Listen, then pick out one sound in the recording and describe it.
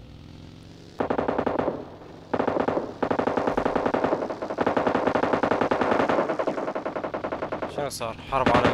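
A buggy engine buzzes and revs.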